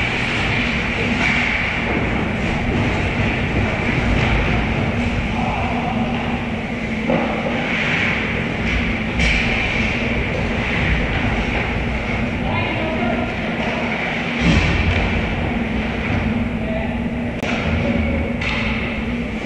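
Hockey sticks clack against a puck and the ice.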